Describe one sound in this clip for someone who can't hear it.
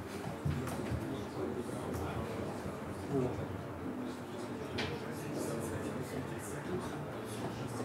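Laptop keys click under typing fingers.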